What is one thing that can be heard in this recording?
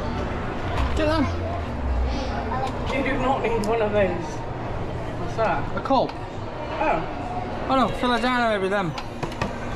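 A young child talks excitedly nearby.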